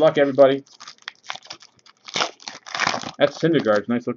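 A plastic wrapper crinkles and tears as hands pull it open.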